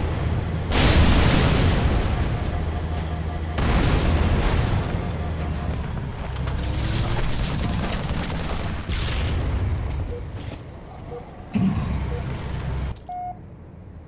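A tank engine rumbles and roars.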